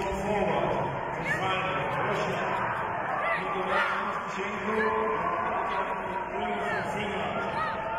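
A large crowd chatters in a big echoing hall.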